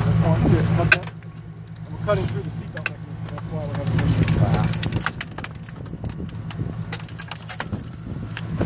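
Metal creaks and cracks as a car door pillar is spread apart.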